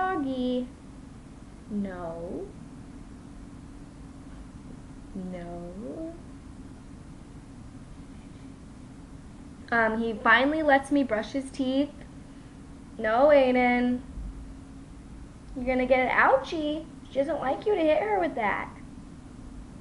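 A young woman speaks casually and close by, with pauses.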